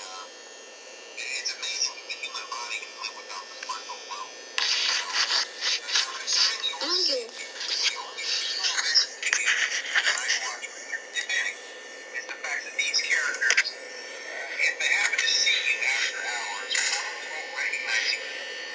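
A handheld game console plays busy, tinny game sound effects and music through its small speaker.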